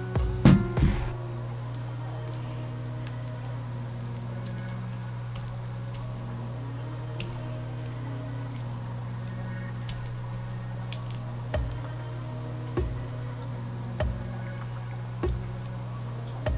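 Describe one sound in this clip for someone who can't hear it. A spatula scrapes softly as it spreads a thick paste.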